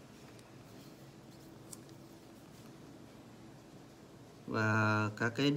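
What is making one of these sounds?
A marker tip rubs softly on paper.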